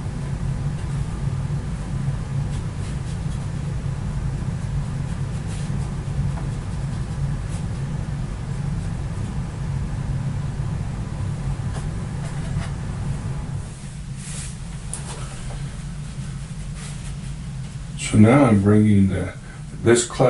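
A paintbrush swishes softly across paper.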